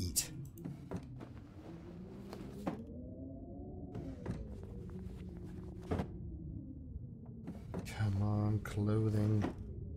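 A wooden drawer rattles as it is searched.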